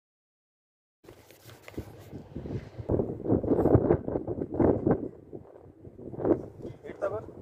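Wind blows across the microphone.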